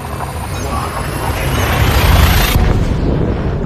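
A deep rushing roar swells, then cuts off suddenly.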